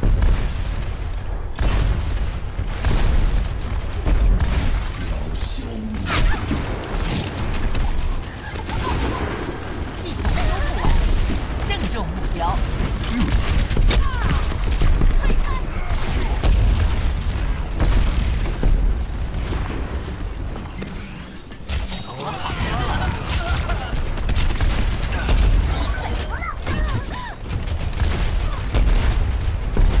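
Rapid gunfire blasts from a video game.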